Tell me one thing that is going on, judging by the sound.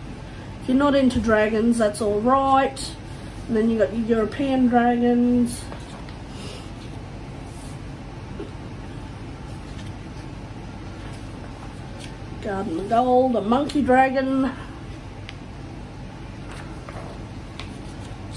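Paper pages rustle as a book's pages are turned.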